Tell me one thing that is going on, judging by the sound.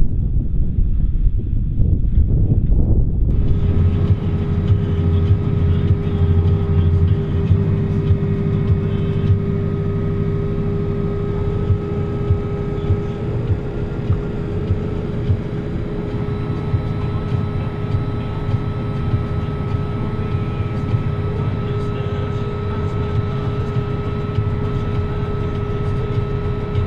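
A tractor engine rumbles steadily, heard from close by.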